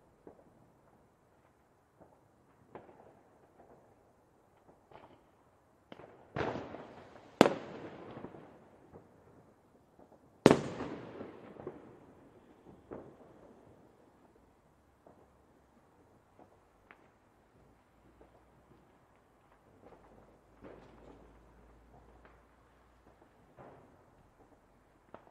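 Fireworks bang and crackle, with booming blasts that echo away.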